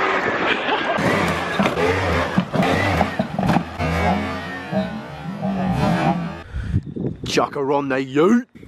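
A scooter engine revs and buzzes nearby outdoors.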